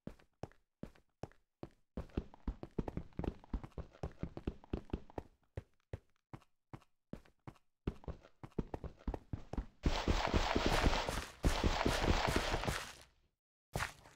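Footsteps crunch quickly over hard ground.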